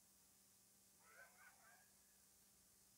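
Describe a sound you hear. A young child calls out briefly nearby.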